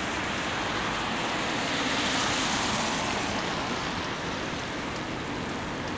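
An ambulance engine hums as it drives away along the road.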